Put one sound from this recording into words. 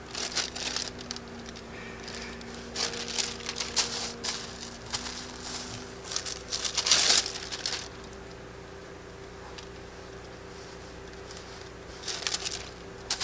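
Paper rustles and crinkles as sheets are lifted and laid down.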